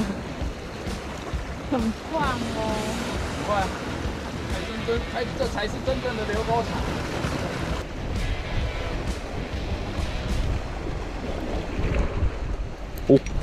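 Sea waves wash against rocks close by.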